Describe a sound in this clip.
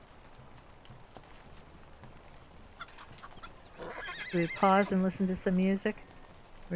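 A horse's hooves clop on stone.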